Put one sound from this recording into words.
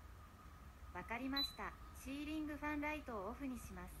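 A smart speaker's synthetic voice answers through a small speaker.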